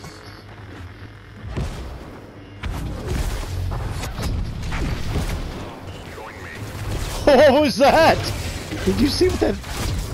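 Lightsabers hum and clash in a duel.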